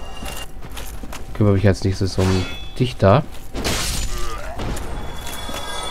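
A sword swings and strikes with a heavy thud.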